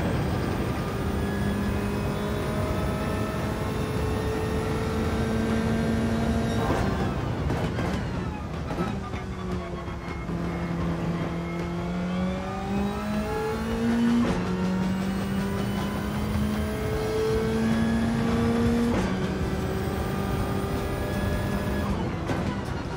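A racing car engine roars at high revs, rising and dropping in pitch as it shifts gears.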